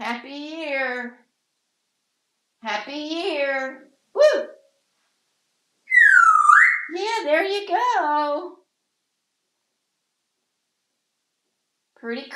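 A parrot chatters in short, voice-like bursts.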